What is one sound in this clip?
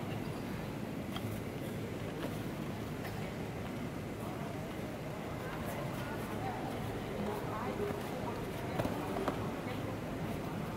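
Bare feet slap and shuffle on a padded mat in a large echoing hall.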